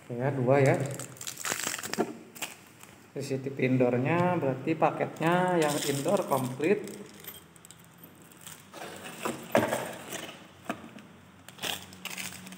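Plastic wrap crinkles as it is handled.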